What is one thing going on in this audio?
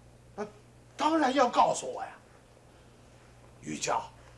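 An older man replies with animation.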